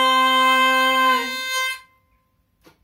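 A hurdy-gurdy plays a loud droning tune and stops abruptly.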